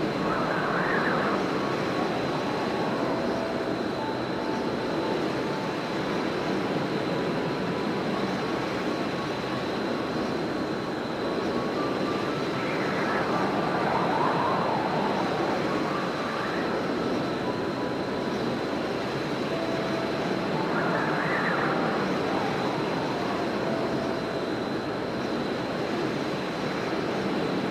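Wind rushes steadily past while gliding through the air.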